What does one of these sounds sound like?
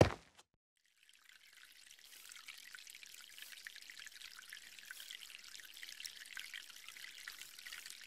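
Water drips steadily into a metal cauldron.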